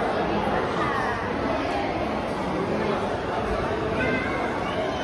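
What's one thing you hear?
A crowd of people chatters in a large indoor hall.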